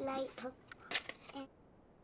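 Paper cards rustle as they are handled.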